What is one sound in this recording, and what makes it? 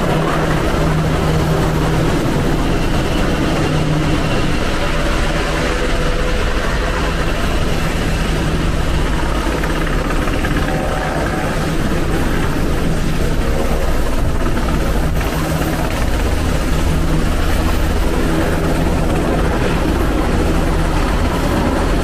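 Wind blows hard across open water.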